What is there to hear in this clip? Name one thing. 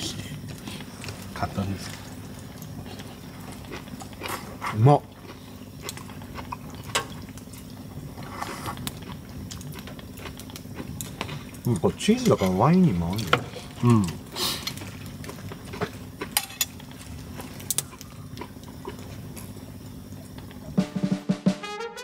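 Utensils clink and scrape against plates.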